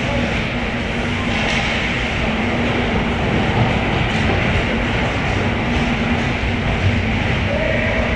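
Hockey sticks clack against a puck and each other.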